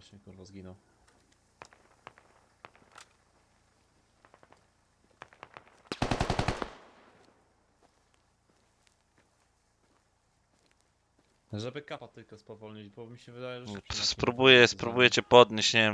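Footsteps crunch through grass.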